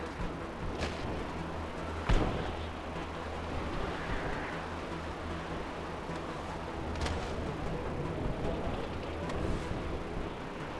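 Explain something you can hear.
Footsteps tread slowly on a hard surface.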